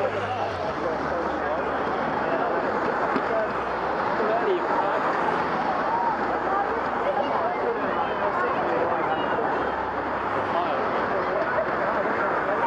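Cars drive past close by one after another.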